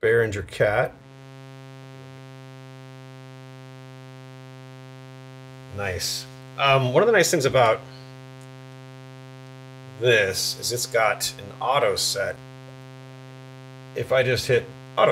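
A synthesizer plays a steady, buzzing low drone.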